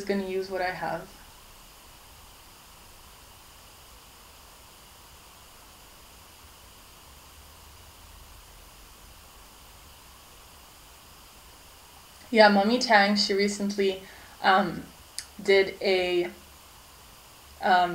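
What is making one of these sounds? A young woman talks cheerfully and close by.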